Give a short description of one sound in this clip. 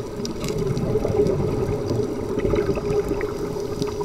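Bubbles from a diver's breathing gurgle and rumble close by underwater.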